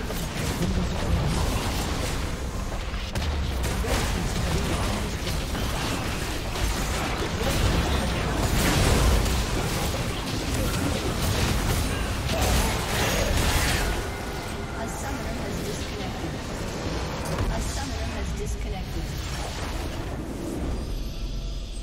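Spell blasts, clashes and explosions of a battle in a video game crackle and boom.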